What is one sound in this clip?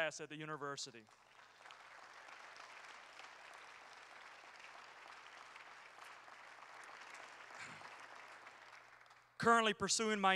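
An audience applauds steadily.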